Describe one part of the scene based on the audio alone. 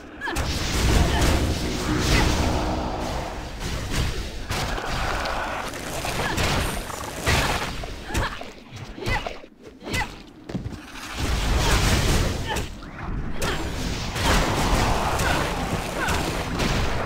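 Magic spells crackle and burst in a game battle.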